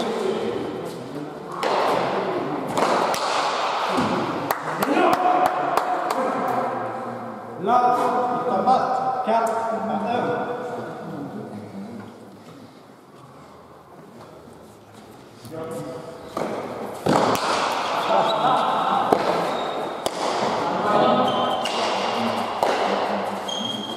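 A hard ball smacks sharply against a wall in a large echoing hall.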